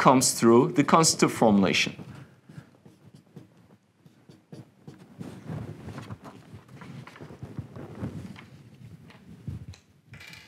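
A man speaks calmly and clearly nearby, lecturing.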